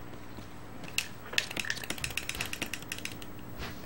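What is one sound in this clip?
Short electronic menu blips sound in quick succession.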